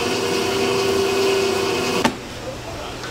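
An electric hand blender whirs loudly through a thick mixture.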